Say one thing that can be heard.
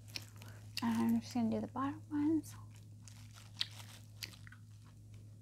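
Fingers rustle and brush against something soft close to a microphone.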